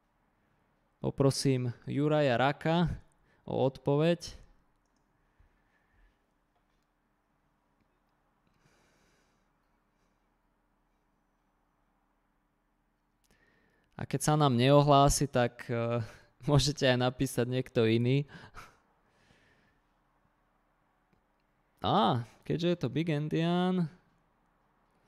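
A man speaks calmly and explains, close to a microphone, with pauses.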